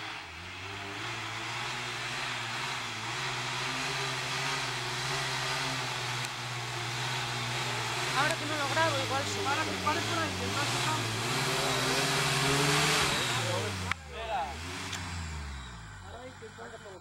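An off-road vehicle's engine revs hard, climbing.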